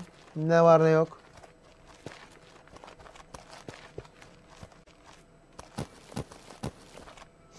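Footsteps tread on a stone path.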